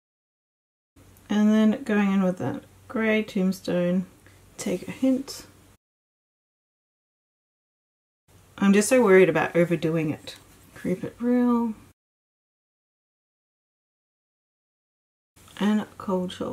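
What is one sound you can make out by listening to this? A young woman talks calmly and close to a microphone, in short bursts with pauses.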